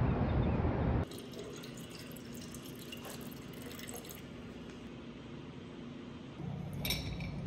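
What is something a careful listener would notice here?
Liquid pours into a glass jar.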